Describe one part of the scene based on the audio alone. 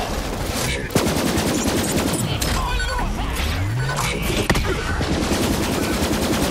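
Energy blasts crackle and zap.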